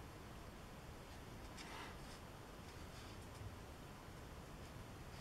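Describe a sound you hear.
A paintbrush brushes softly across paper.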